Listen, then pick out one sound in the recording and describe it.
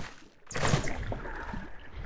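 Water splashes and bubbles as a bucket is emptied.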